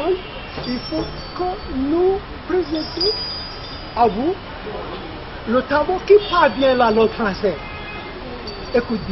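A man chants loudly outdoors.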